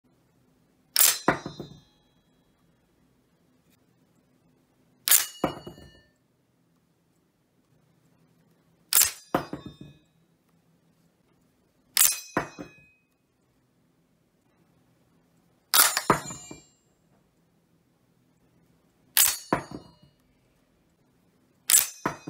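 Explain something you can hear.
A steel en-bloc clip drops onto a cloth-covered surface.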